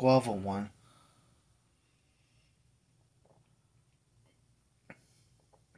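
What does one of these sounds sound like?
A man gulps a drink from a bottle.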